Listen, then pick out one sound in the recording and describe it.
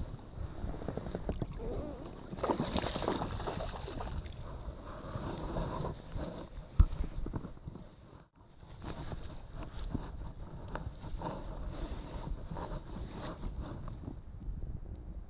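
Small waves lap and splash against a boat.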